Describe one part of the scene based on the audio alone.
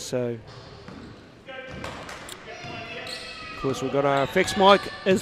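Young women players shout to each other across the court.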